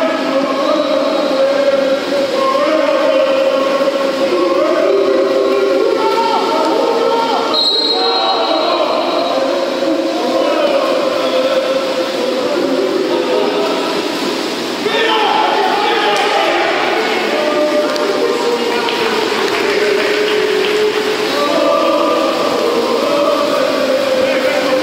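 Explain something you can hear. Water splashes as swimmers thrash through a pool.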